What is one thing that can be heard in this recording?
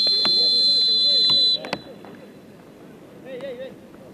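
A football is kicked on artificial turf.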